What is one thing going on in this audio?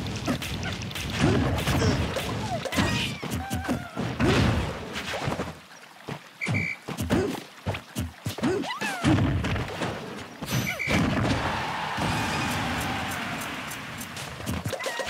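Game fighters hit each other with sharp thuds and whooshes.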